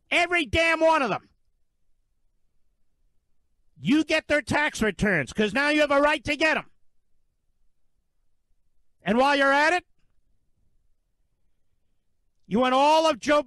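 A man speaks emphatically into a microphone, in short bursts with pauses.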